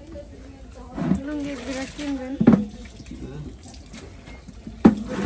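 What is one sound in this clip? Water splashes as a bucket is tipped.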